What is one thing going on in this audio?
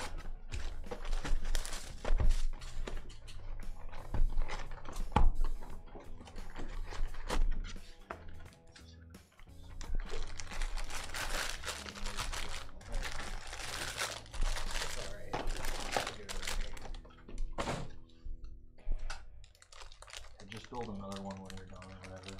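Cardboard scrapes and taps as a box is turned.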